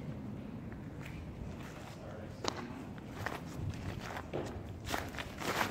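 Footsteps crunch on rough ground.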